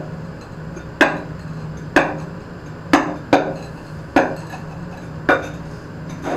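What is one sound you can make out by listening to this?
A tool knocks sharply on floor tiles.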